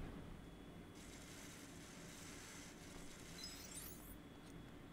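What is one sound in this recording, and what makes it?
A heavy gate scrapes and rattles as it slides open.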